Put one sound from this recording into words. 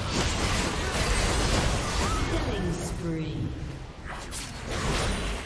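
Magic spell effects whoosh and burst in a fantasy battle.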